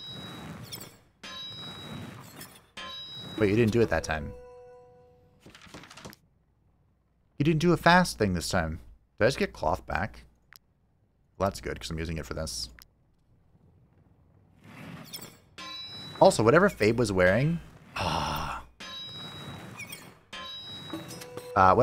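A hammer strikes metal on an anvil with ringing clangs.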